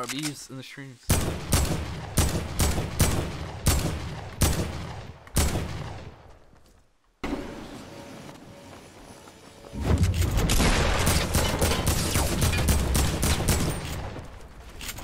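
A rifle fires a series of sharp shots.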